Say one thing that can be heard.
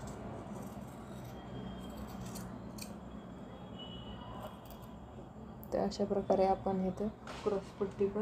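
Scissors snip through cloth.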